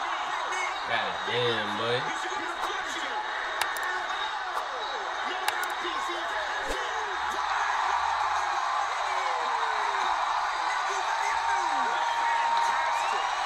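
Punches thud against a fighter's body and head.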